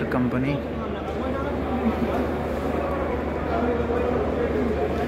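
A crowd of people chatters in a large, busy hall.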